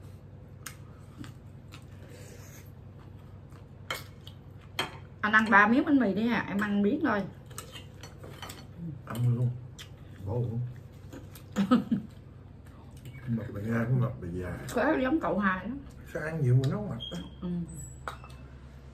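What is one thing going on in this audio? Cutlery clinks against plates.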